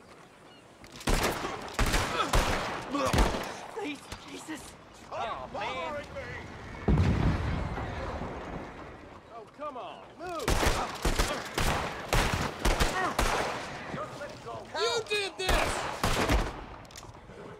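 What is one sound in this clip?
Gunshots crack loudly in rapid bursts.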